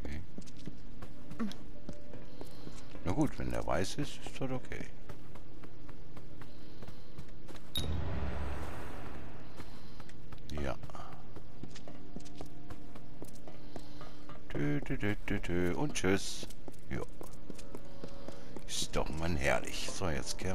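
Footsteps tap steadily on a hard stone floor.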